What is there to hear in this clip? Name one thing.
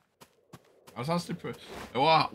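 A man speaks into a close microphone in short remarks.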